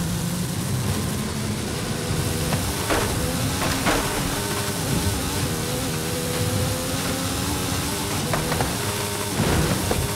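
A sports car engine roars at high revs.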